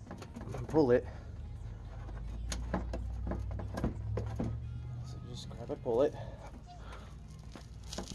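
A plastic mud flap rattles and clicks as a hand tugs at its metal bracket.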